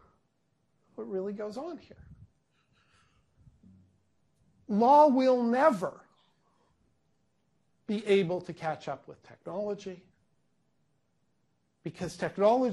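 A middle-aged man speaks with animation in short bursts with pauses.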